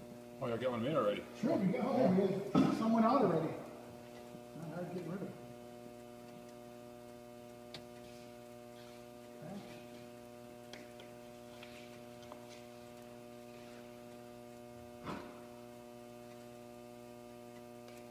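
An oven hums steadily.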